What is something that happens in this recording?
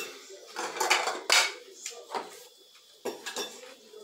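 A metal pot clanks against a stove.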